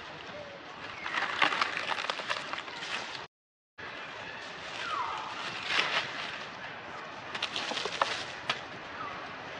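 Dry leaves rustle and crackle close by.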